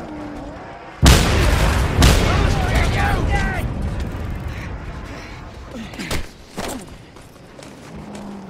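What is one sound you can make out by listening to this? Heavy blows thud and crash in a fistfight.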